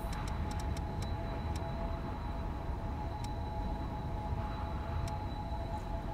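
Soft menu clicks tick one after another.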